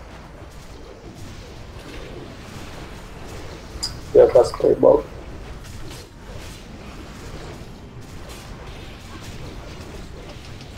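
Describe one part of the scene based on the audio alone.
Game combat sounds clash and hiss throughout a fight.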